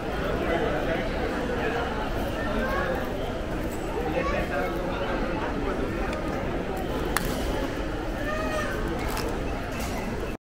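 Many people chatter in a large, echoing hall.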